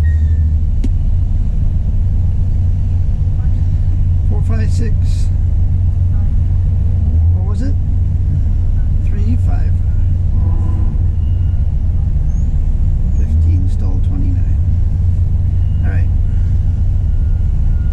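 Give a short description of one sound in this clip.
A middle-aged man speaks calmly and close into a radio handset.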